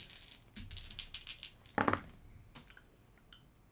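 Dice rattle and clatter into a tray.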